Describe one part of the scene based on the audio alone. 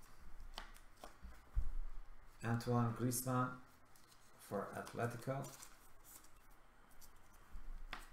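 A foil card pack crinkles and rustles in hands.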